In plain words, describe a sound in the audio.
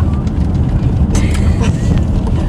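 A seatbelt buckle clicks.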